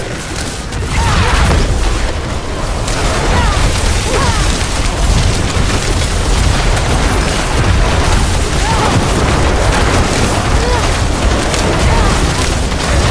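Fiery explosions boom and rumble.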